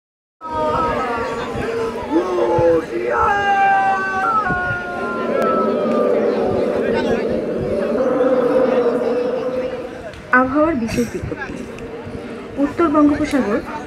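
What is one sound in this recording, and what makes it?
A crowd of children chatter and shout nearby outdoors.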